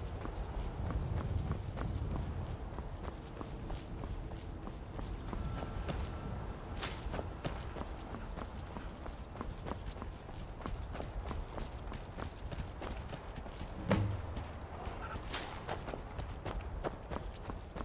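Footsteps crunch steadily on stony ground.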